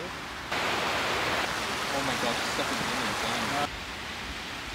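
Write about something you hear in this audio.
A stream rushes and splashes over rocks.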